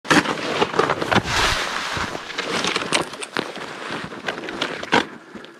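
Snowy branches rustle and brush against a jacket.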